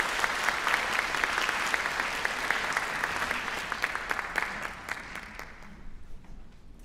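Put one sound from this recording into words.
An audience claps loudly in a large hall, then the applause dies away.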